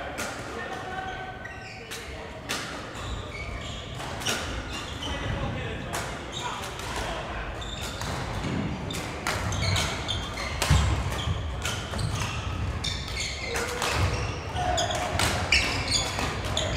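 Shuttlecocks are struck sharply with rackets, over and over, in a large echoing hall.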